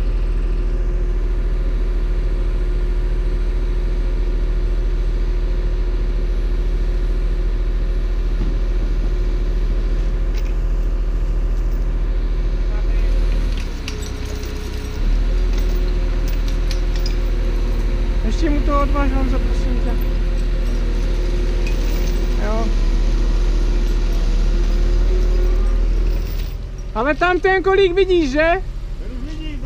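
A heavy machine's diesel engine rumbles steadily close by.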